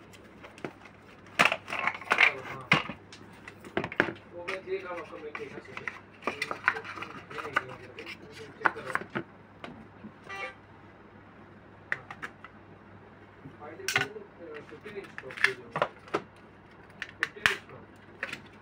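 Plastic parts click and tap against each other.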